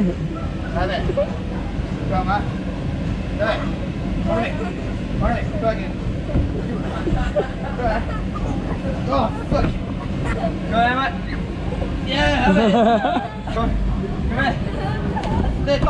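Feet thump and bounce on an inflatable castle.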